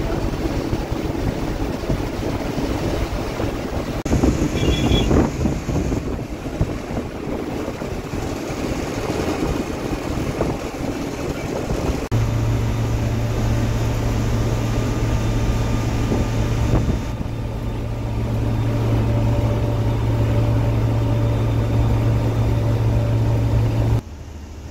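Road noise and wind rush past a moving bus.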